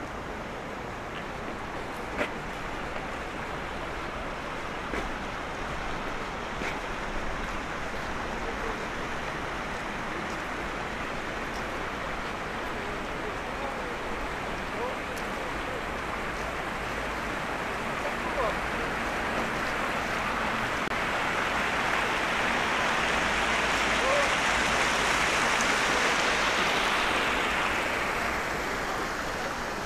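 A stream of water rushes and splashes over rocks nearby, growing louder.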